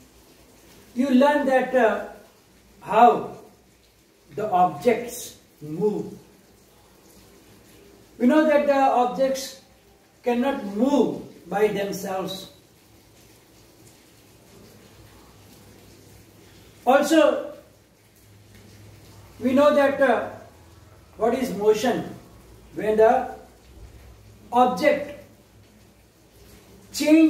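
A middle-aged man speaks clearly and steadily in short phrases, close by.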